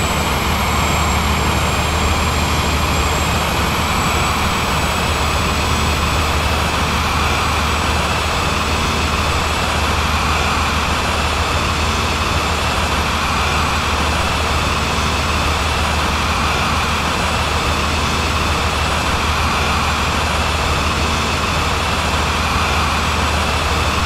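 A train engine hums steadily and rumbles along the tracks.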